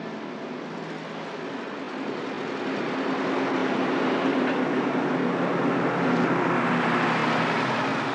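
A small car's engine purrs as the car drives past.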